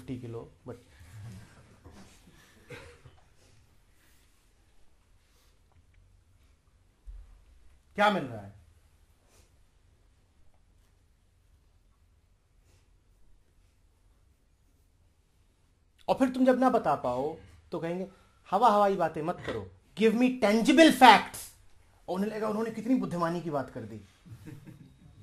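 A man speaks calmly and close, in bursts with long pauses.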